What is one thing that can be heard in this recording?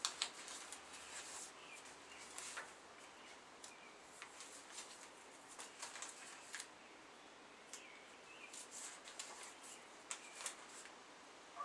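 Paper cards rustle and flick as they are shuffled and handled.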